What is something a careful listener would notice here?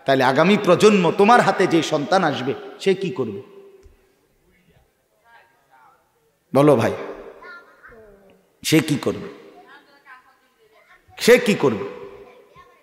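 A man preaches with fervour into a microphone over loudspeakers, his words echoing, in bursts with pauses.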